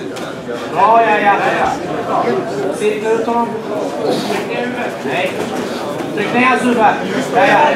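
A crowd of men and women shouts and cheers loudly.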